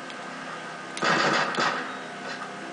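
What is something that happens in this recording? Gunfire crackles from a video game played through a television speaker.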